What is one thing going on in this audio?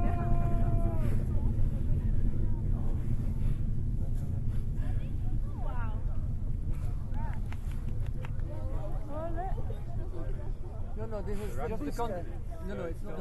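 Men and women chatter in a crowd nearby.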